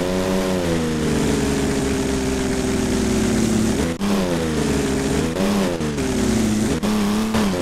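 Tyres screech on tarmac as a car drifts around corners.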